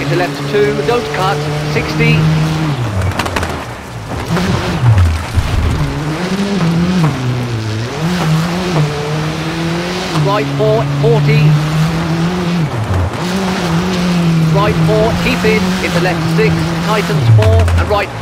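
A rally car engine revs hard, rising and falling as gears change.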